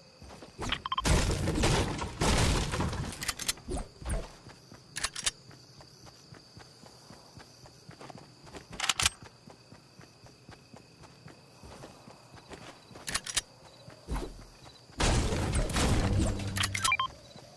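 A pickaxe strikes and smashes through bushes.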